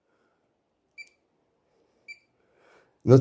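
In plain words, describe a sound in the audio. A multimeter gives short beeps.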